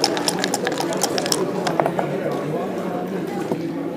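Dice rattle and tumble onto a board.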